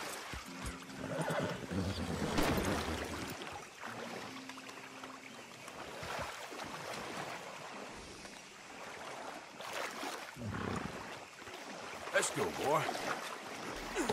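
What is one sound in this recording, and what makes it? Water splashes as a man wades through a shallow stream.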